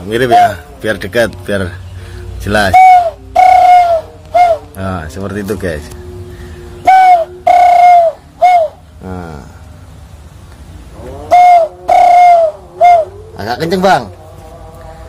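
A man blows through his cupped hands close by, making short hooting bird-like calls in bursts.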